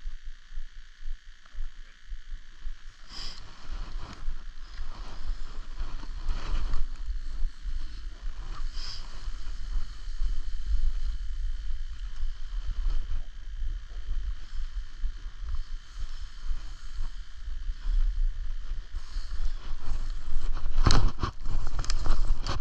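Wind rumbles past the microphone.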